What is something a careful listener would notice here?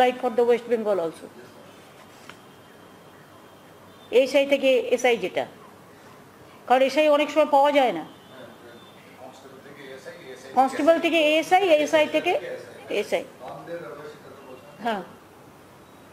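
A middle-aged woman speaks into a microphone in short, measured phrases with pauses.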